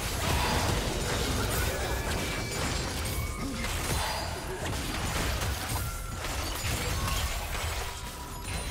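Fantasy battle effects whoosh, crackle and clash over each other.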